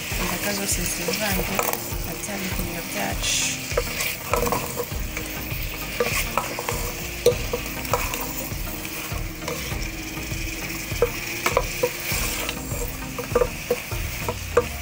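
A wooden spoon scrapes and knocks against a metal pan while stirring vegetables.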